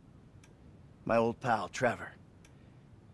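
A second man speaks calmly in reply.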